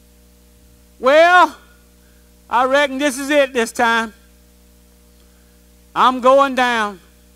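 An older man preaches with animation through a microphone in an echoing hall.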